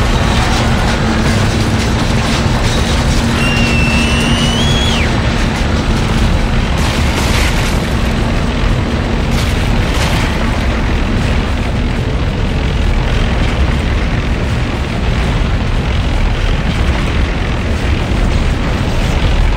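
A large machine grinds and rumbles steadily.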